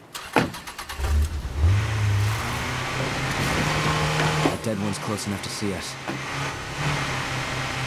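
A car engine starts and roars as the car drives off.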